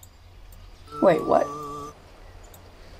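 A short electronic chime rings out and fades.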